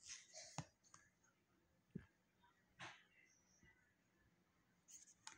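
A plastic disc clicks softly as hands turn it.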